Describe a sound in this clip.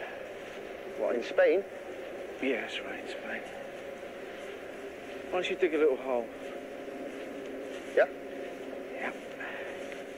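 A middle-aged man speaks quietly and close.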